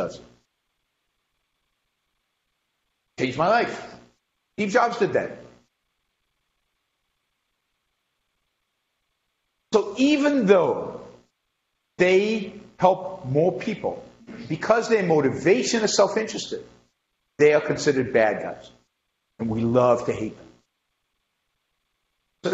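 A middle-aged man speaks with animation through a microphone, with pauses between phrases.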